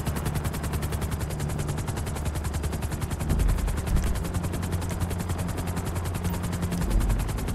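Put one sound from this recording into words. A helicopter's rotor blades chop steadily and rapidly.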